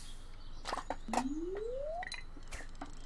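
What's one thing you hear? A short rising tone plays as a fish is landed.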